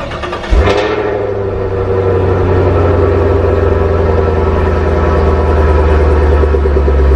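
A car engine idles with a deep, steady exhaust rumble.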